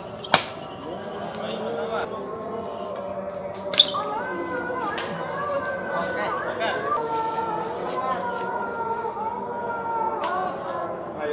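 Badminton rackets smack a shuttlecock back and forth.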